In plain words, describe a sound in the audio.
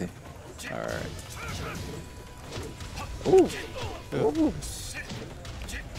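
Fighters' punches and kicks land with sharp thuds.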